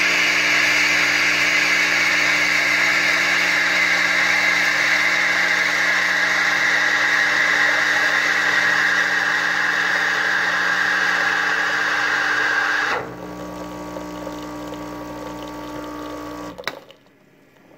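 An espresso machine's pump hums while it pulls a shot.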